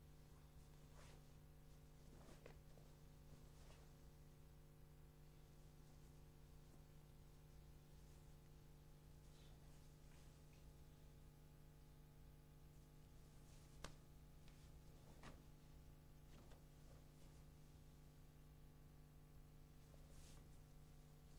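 A cloth uniform snaps sharply with quick strikes.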